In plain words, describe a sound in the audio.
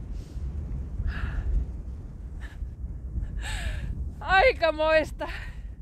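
A young woman laughs and talks with animation close by.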